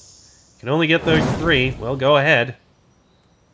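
Fireballs burst with a booming rumble.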